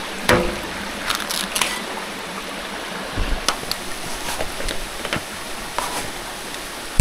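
Plastic pipe fittings knock and scrape together.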